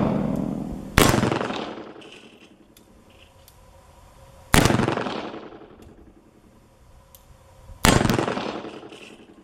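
A revolver fires loud, sharp shots that ring out outdoors.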